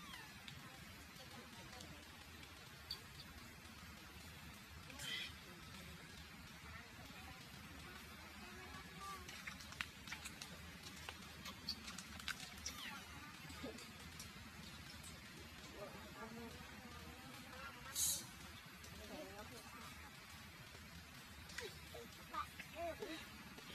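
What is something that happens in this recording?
A baby monkey squeaks softly close by.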